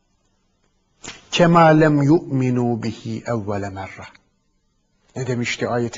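A man speaks calmly into a close microphone, reading out.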